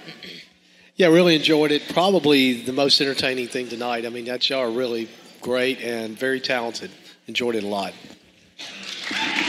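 A man speaks over a loudspeaker in a large hall.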